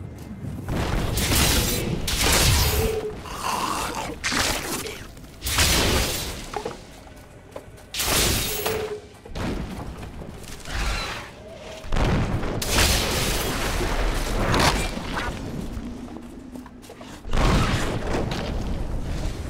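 Weapons hit monsters with heavy thuds.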